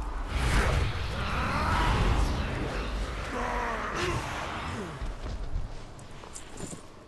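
Magic spells crackle and boom during a fight.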